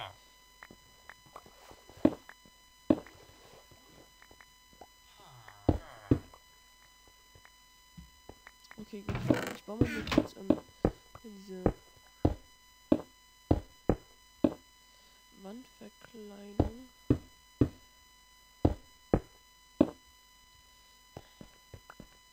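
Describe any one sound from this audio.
Stone blocks are placed one after another with short clicks.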